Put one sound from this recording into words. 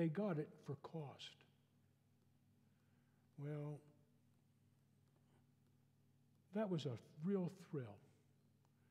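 An elderly man speaks slowly and calmly through a microphone, with pauses.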